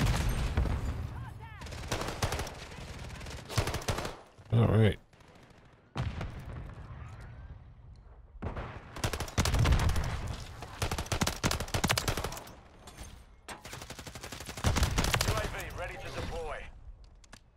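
Gunfire cracks in rapid bursts, with pauses between.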